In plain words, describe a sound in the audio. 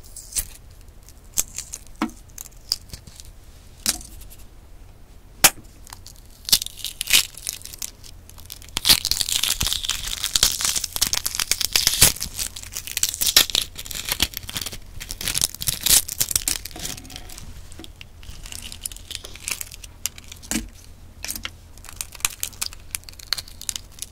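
Fingers crack and peel the shell off a hard-boiled egg close to a microphone.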